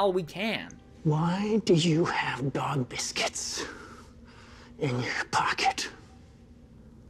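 An elderly man speaks slowly and gravely.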